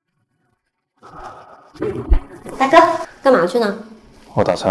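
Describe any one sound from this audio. A woman asks a question, close by.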